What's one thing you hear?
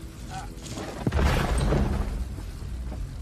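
A heavy stone block scrapes and crashes to the ground with a deep thud.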